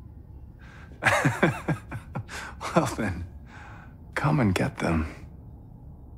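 A man speaks with a taunting tone.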